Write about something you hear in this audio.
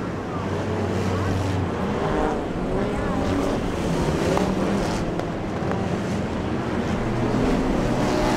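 Race car engines roar and rev loudly around a track.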